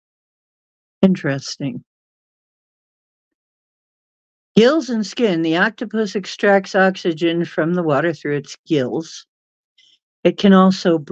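A middle-aged woman speaks calmly and closely into a microphone, with pauses.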